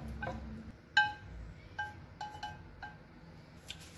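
A metal pan clinks against a pot's rim.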